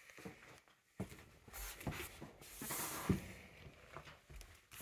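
A hand lifts a bench lid with a wooden knock.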